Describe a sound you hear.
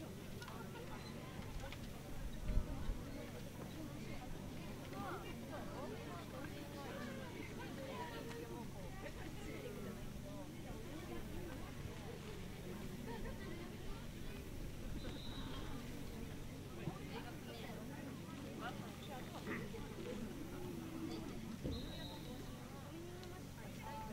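Many young voices chatter and call out in the distance, outdoors.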